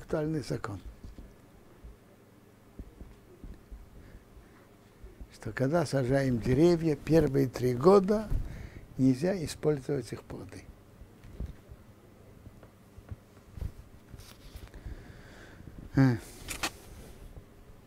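An elderly man speaks calmly and close up, with pauses.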